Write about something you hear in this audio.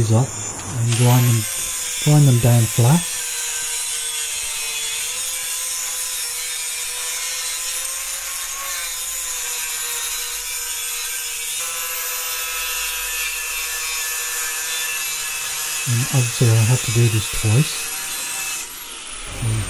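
An angle grinder whines steadily as it cuts metal.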